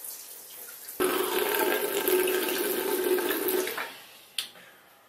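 Water splashes as a face is washed.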